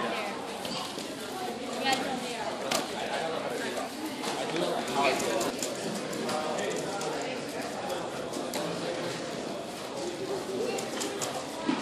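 Many people chatter in the background of an echoing room.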